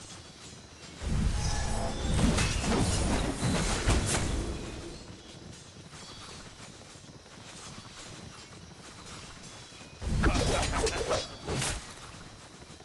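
Game battle sounds clash and rumble in loud bursts.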